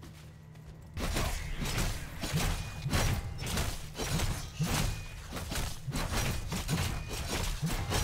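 Game fighters clash with rapid hits, bursts and magic blasts.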